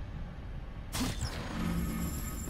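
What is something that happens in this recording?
A magical burst whooshes and shimmers.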